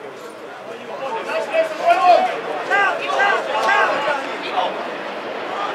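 Men shout to each other across an open field, heard from a distance.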